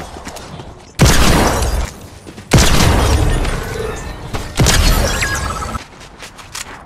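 Heavy gunfire booms in loud bursts.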